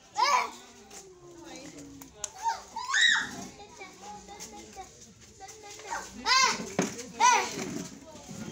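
Children call out in high voices.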